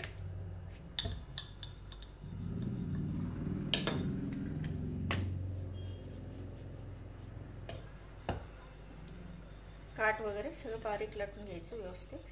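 A wooden rolling pin rolls and thumps over dough on a board.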